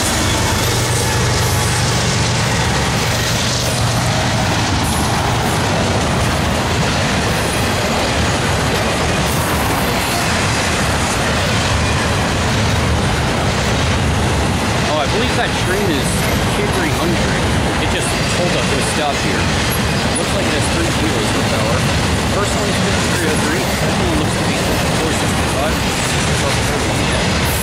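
Train wheels clatter steadily over the rails.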